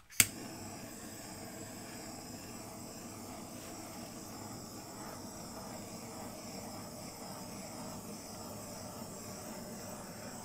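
A small handheld torch hisses steadily.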